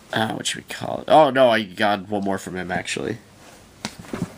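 Plastic sleeves crinkle and rustle as a hand turns pages.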